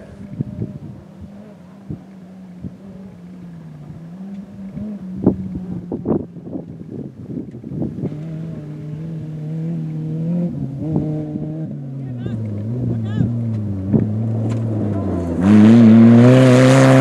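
Gravel and stones crunch and pop under an off-road buggy's tyres.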